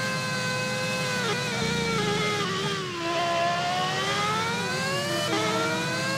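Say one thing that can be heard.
A racing car engine winds down as it slows, then revs back up.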